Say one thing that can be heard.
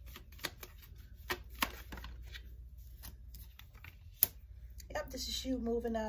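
A card is laid down on a table with a soft tap.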